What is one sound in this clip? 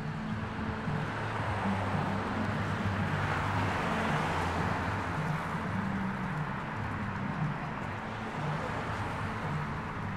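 Traffic rumbles past along a street.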